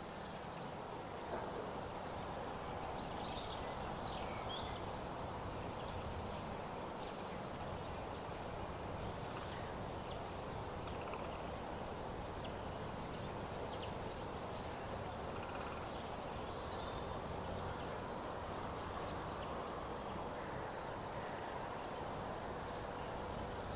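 Wind blows steadily across open ground.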